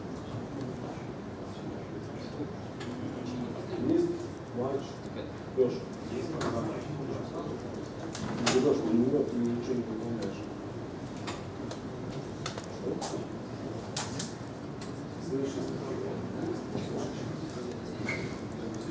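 Quiet murmuring and rustling come from a seated audience.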